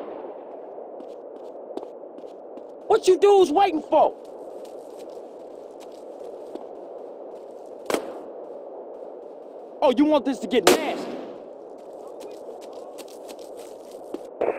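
Footsteps run over grass and pavement.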